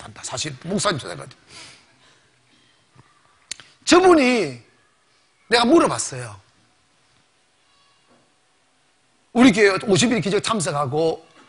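A man preaches with animation through a microphone in bursts, with pauses between phrases.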